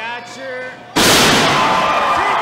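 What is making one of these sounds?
A wrestler crashes down hard onto the ring mat.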